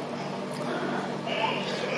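A young woman slurps noodles loudly close to a microphone.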